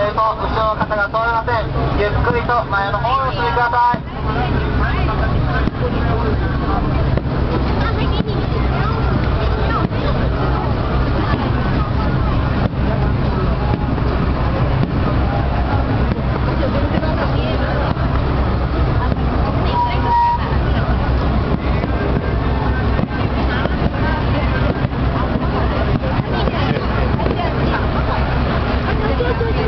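Fireworks bang and crackle in the distance.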